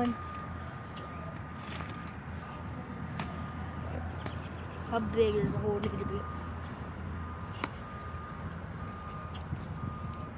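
A metal shovel scrapes and thuds into grassy soil.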